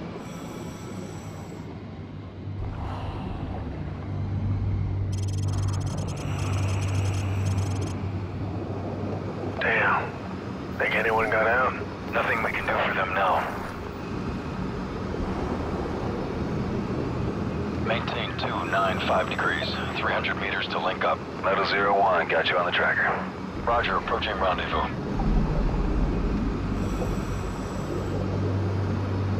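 An underwater propulsion motor hums low and steadily.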